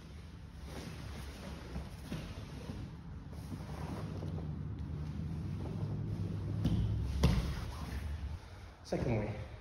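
Heavy fabric rustles and scuffs as two people grapple on a mat.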